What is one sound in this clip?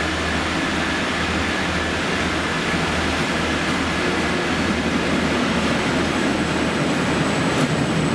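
A diesel locomotive rumbles past close by.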